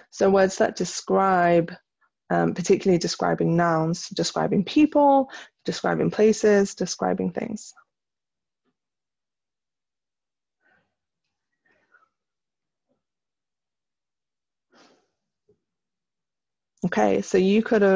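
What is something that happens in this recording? A young woman reads aloud slowly and clearly, close to a microphone, with pauses.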